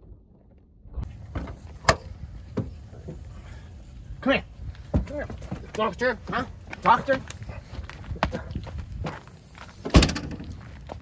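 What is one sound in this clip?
Young men talk and laugh loudly close by.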